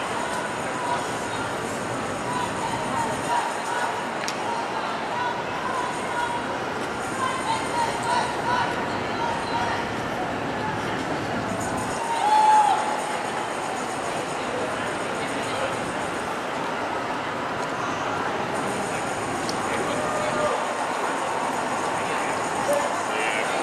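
A crowd of people murmurs and chatters outdoors on a busy street.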